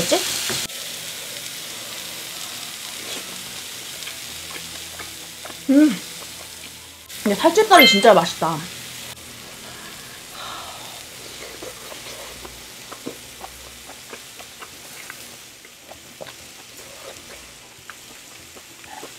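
A young woman chews food noisily close to a microphone.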